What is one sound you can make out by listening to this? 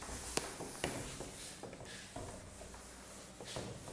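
A whiteboard eraser rubs across a board.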